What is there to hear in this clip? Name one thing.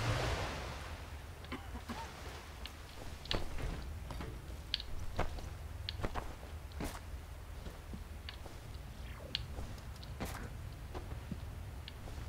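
Footsteps and scuffs sound on rock.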